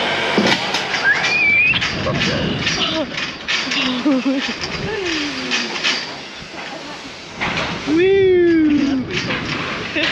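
A young woman shrieks and laughs close by.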